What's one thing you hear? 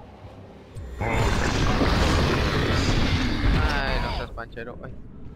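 A large structure collapses with a loud, rumbling crash.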